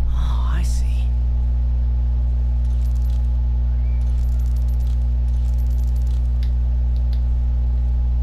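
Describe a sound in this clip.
A metal dial turns with soft mechanical clicks.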